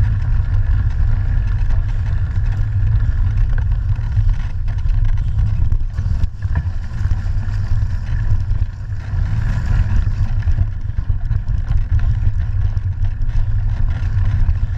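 Bicycle tyres roll and crunch over a rough dirt trail.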